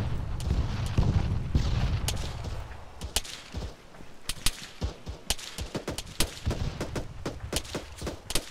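Footsteps rustle and thud through grass at a walking pace.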